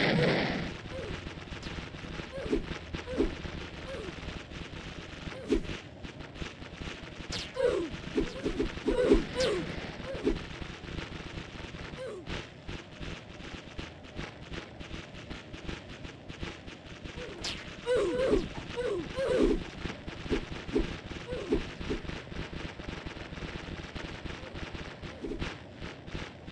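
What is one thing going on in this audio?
Monstrous creatures screech and growl again and again.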